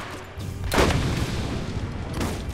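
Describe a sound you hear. A fiery explosion booms.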